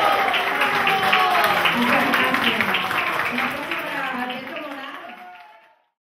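An accordion plays a lively tune, then fades away.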